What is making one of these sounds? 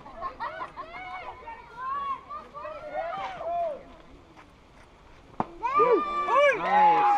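Children shout and cheer outdoors.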